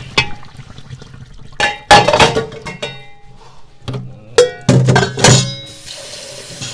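A metal strainer clanks in a metal sink.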